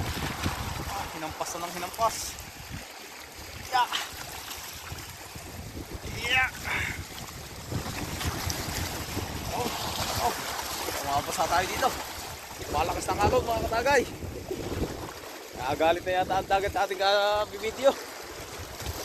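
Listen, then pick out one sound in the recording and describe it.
A young man talks calmly close to the microphone.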